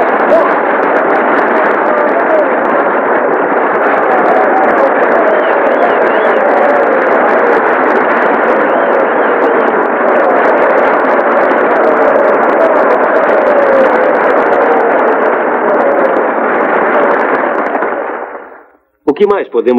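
A large crowd applauds loudly and steadily, then the applause fades.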